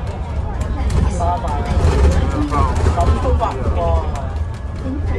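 A crowd outside cheers and calls out, muffled through windows.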